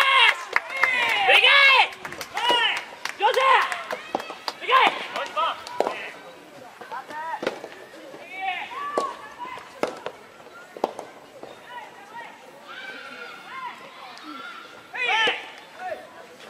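Tennis balls are struck with sharp pops of rackets.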